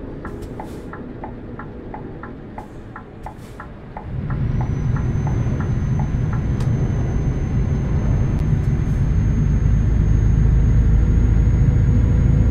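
A truck engine rumbles steadily and grows louder as it speeds up.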